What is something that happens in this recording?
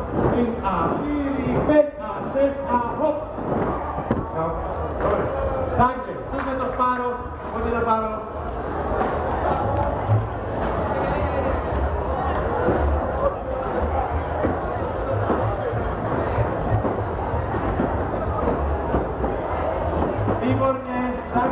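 Loud music with a heavy beat plays through loudspeakers in a large tent.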